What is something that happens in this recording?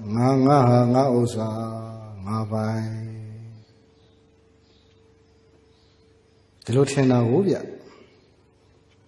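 A man chants slowly into a microphone.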